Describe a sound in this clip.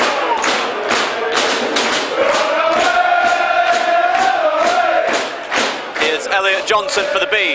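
A large crowd chants and sings loudly outdoors.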